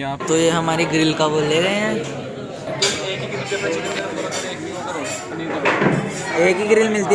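Young men talk casually close by, in a quiet room.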